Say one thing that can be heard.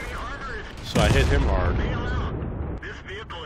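A loud explosion booms and rolls away.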